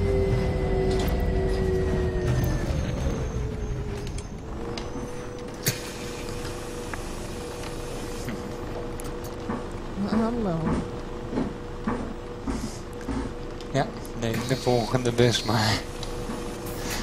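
A bus engine whines as the bus slows down and then idles steadily.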